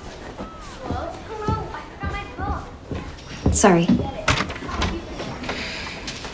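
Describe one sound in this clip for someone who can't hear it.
Footsteps pass by on a wooden floor.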